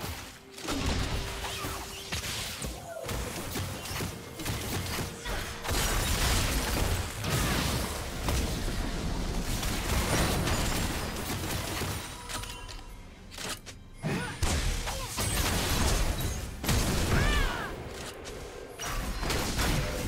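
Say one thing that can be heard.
Game spell effects and weapon blows crackle and clash in a busy fight.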